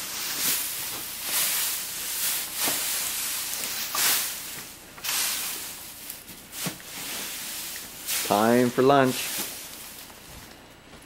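Straw rustles and crunches as it is forked.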